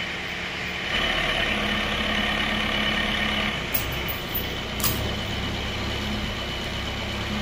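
A tractor engine runs with a steady chugging drone.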